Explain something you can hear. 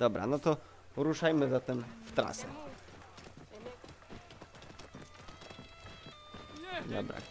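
A horse's hooves thud on a dirt path.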